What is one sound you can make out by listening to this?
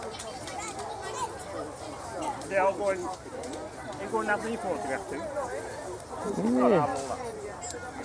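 A middle-aged woman speaks nearby.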